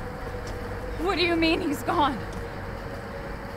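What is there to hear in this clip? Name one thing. A young woman asks a question in a worried voice.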